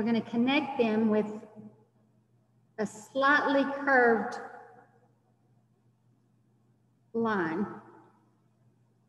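A young girl speaks with animation over an online call.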